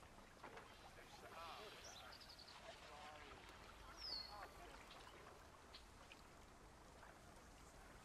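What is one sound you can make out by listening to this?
Water flows and babbles in a shallow stream.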